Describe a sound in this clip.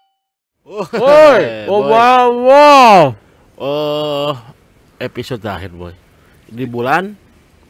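A man talks calmly into a microphone, close by.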